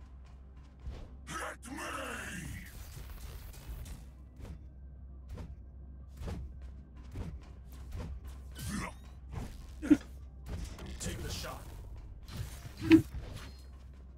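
A game weapon fires in sharp bursts.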